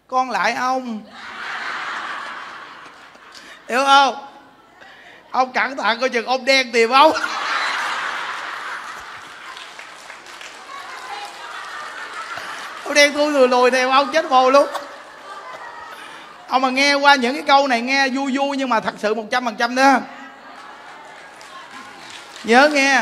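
A large crowd laughs.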